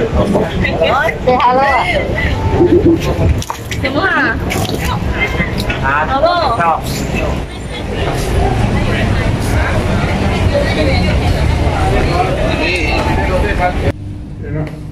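A busy crowd murmurs outdoors on a city street.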